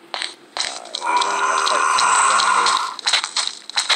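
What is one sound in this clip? A zombie groans low and rasping nearby.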